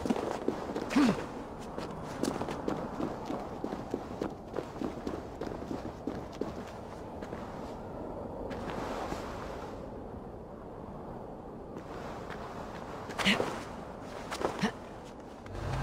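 A man grunts with effort as he climbs.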